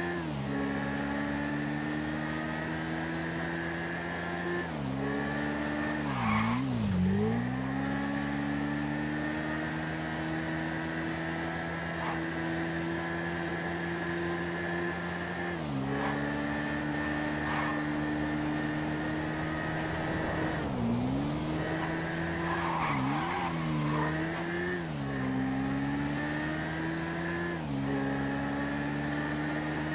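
A motorcycle engine roars steadily, shifting gears and revving up and down.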